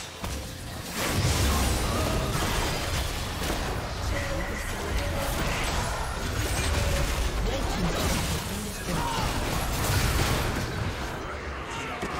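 Heavy game impacts thud and boom.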